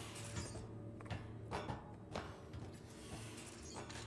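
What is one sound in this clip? Boots clank on metal ladder rungs.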